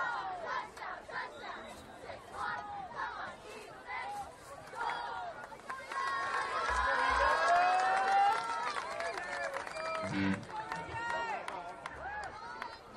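Young male players and coaches shout and call out across an open field.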